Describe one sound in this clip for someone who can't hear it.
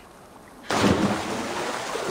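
A figure splashes into water.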